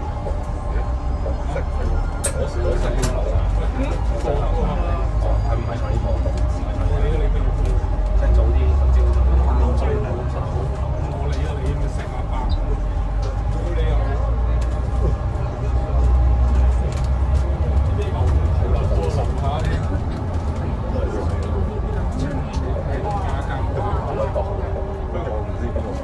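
A bus engine rumbles and hums steadily from inside the cabin.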